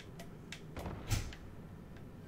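A heavy thud sounds as something drops and lands.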